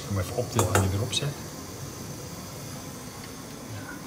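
A metal colander clinks as it is set on a pot.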